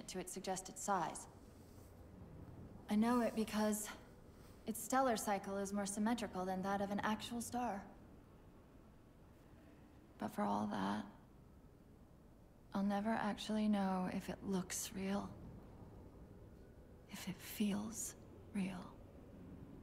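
A young woman speaks softly and calmly, with pauses.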